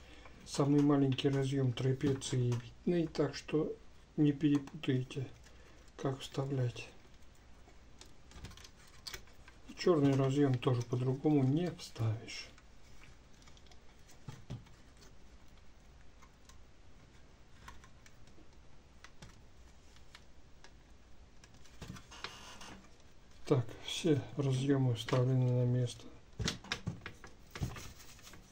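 Hard plastic and metal parts click and knock.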